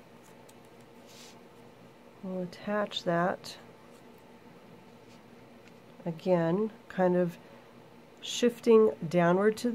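Stiff paper rustles and crinkles softly as it is handled.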